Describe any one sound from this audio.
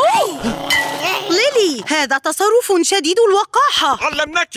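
A woman speaks with annoyance.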